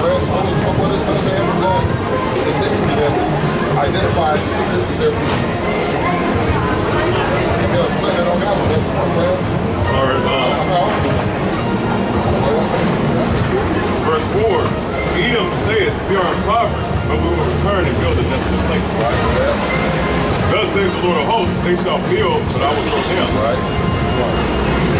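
Several men talk nearby, outdoors on a busy street.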